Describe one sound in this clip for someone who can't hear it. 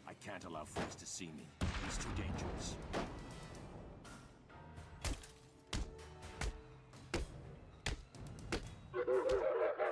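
Heavy blows and metallic thuds land in a fight.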